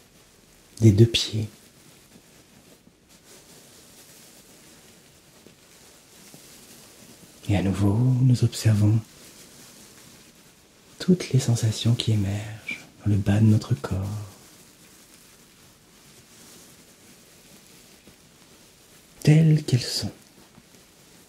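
A young man speaks calmly and close to a microphone, in short bursts with pauses.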